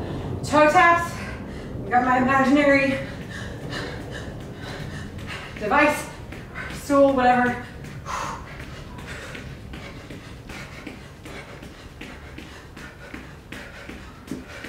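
Sneakers tap lightly and rhythmically on a mat.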